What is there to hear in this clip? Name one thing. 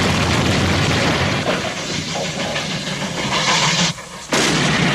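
A steam locomotive chugs and puffs loudly.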